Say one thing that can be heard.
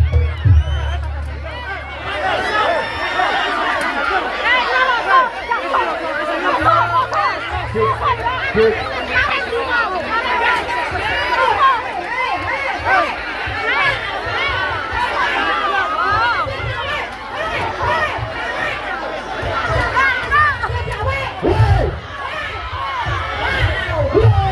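A large crowd of men shouts and clamours close by.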